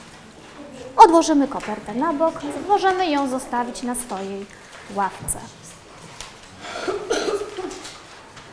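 A middle-aged woman speaks clearly and calmly to a class.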